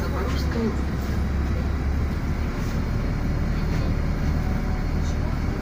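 Road noise hums as the bus rolls along.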